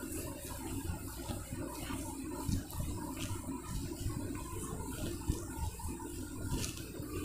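A cloth rubs and squeaks across a whiteboard.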